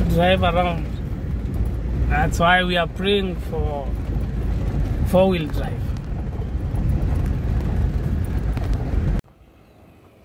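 A vehicle engine rumbles loudly from inside as it drives over a bumpy dirt road.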